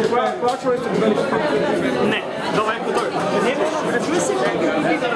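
A band plays loud live music through loudspeakers.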